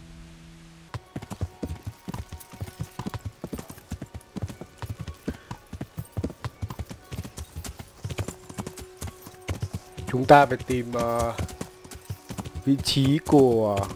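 A horse's hooves thud in a quick, steady gallop.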